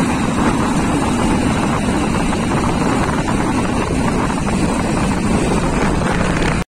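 Wind rushes loudly past at speed.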